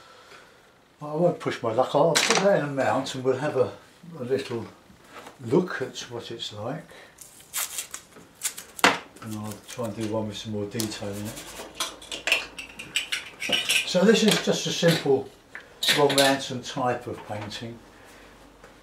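An older man talks calmly and explains, close to the microphone.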